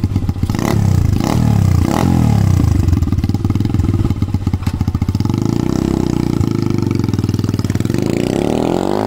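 A motorcycle engine idles and revs loudly up close.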